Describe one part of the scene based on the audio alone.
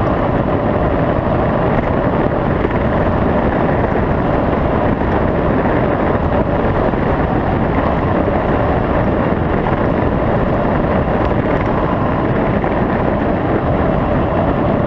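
Tyres roll steadily on a paved road.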